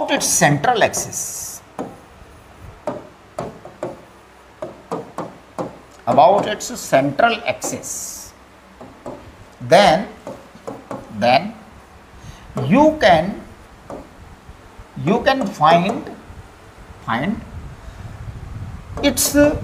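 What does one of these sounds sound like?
An elderly man lectures calmly and close up, with pauses between phrases.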